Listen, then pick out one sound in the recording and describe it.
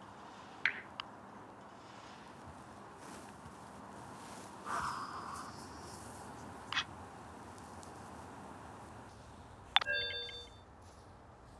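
A phone gives short message chimes.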